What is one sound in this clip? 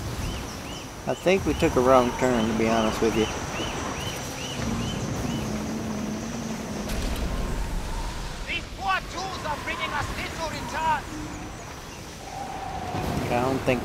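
Water rushes and splashes along the hull of a moving ship.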